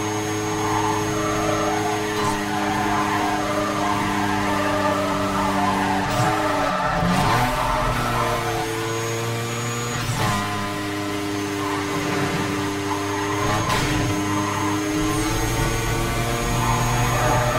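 Tyres hiss on the road at speed.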